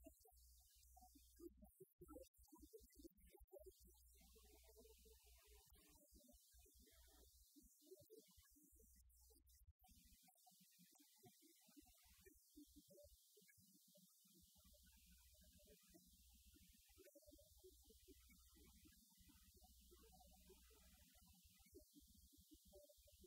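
A band plays loudly through speakers in a large echoing hall.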